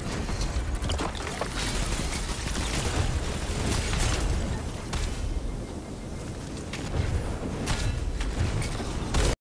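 Video game explosions boom and roar.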